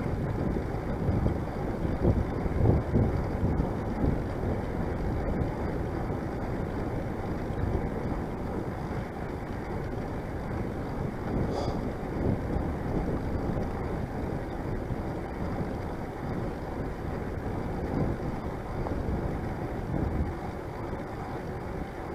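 Tyres roll over a paved path.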